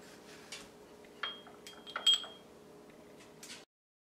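A brush clinks against the inside of a metal cup.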